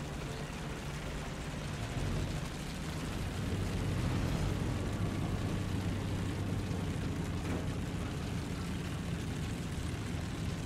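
Tank tracks clatter and squeak along the ground.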